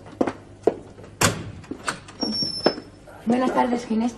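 A door latch clicks and a door creaks open.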